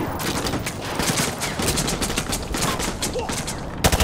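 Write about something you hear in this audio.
Rapid gunfire rattles in a large echoing hall.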